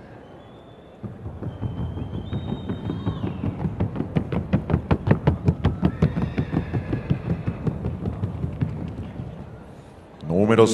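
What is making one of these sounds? A horse's hooves beat a fast, even rhythm.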